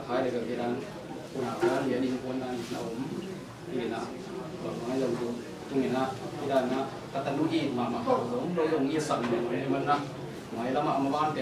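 A man speaks calmly and steadily nearby.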